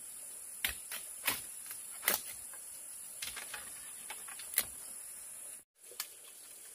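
Bamboo poles knock together on the ground.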